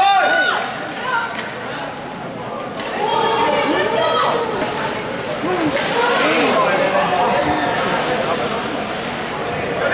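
Spectators shout and cheer nearby in an echoing arena.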